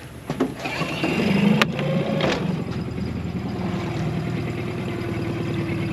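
An electric boat motor hums steadily.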